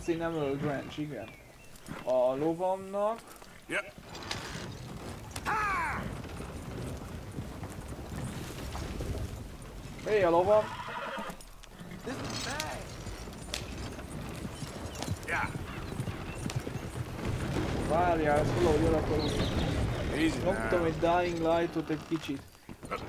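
A wagon rattles along over rough ground.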